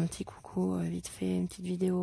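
A felt marker scratches softly on paper.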